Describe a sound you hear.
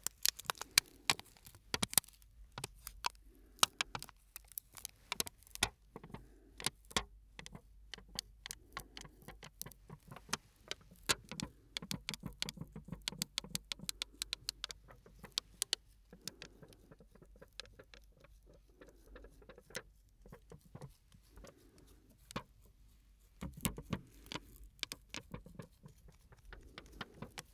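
Small plastic pieces crinkle and click close to a microphone.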